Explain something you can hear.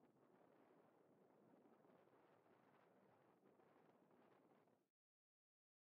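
Small waves wash softly over a pebble shore.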